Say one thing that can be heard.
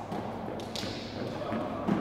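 Footsteps run across a rubber floor in an echoing hall.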